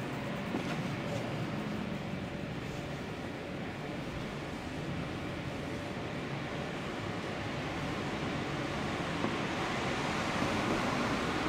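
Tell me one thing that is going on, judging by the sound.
Distant traffic hums faintly outdoors.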